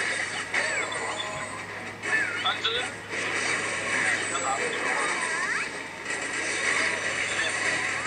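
Battle sound effects from a mobile action game clash and whoosh.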